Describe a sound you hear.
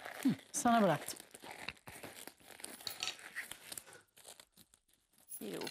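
Rubber gloves rustle and snap as a woman pulls them on.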